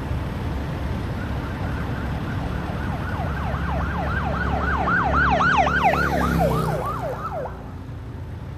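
A fire engine siren wails rapidly, rising and falling, then stops.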